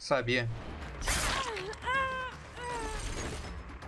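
A blade slashes through the air.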